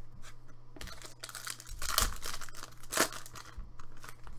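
A plastic card wrapper crinkles and tears as it is opened.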